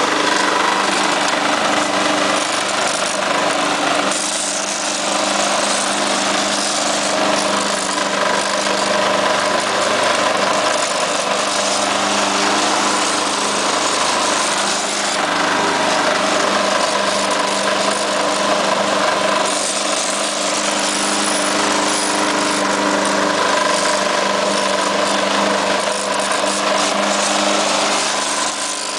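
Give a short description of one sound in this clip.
Mower blades cut through grass.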